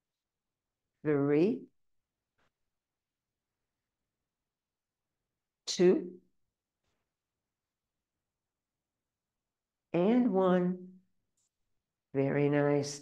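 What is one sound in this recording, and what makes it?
An elderly woman speaks calmly in short phrases, close to a microphone.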